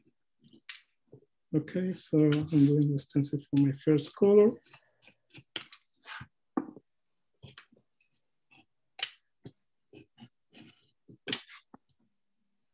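A craft knife scrapes and scores across paper.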